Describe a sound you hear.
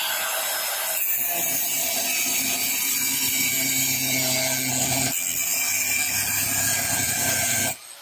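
A grinding disc cuts into steel with a harsh, steady screech.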